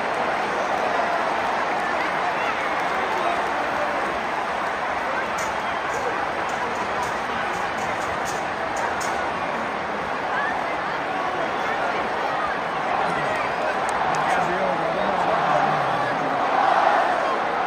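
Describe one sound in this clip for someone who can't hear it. A large stadium crowd murmurs and chants loudly outdoors.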